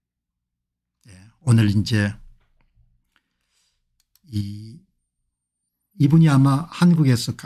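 An older man talks calmly and closely into a microphone, in short bursts.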